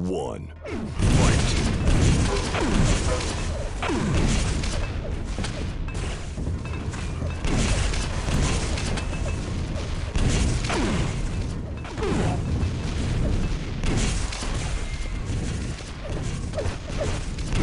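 Energy weapons fire in rapid bursts with zapping and booming blasts.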